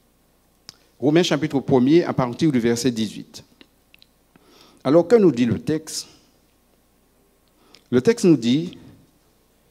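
A man speaks slowly and solemnly into a microphone.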